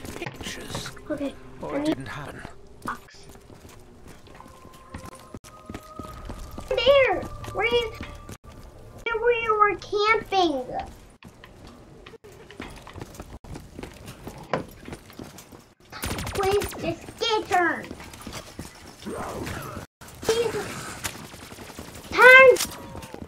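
Young boys talk excitedly close by.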